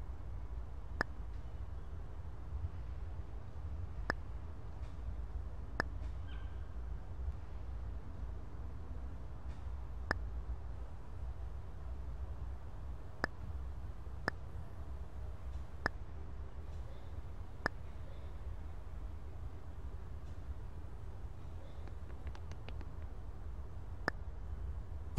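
Short, sharp interface clicks sound now and then.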